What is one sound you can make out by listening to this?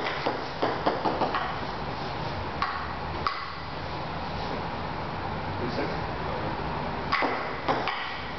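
A ping-pong ball clicks sharply off a table and paddles.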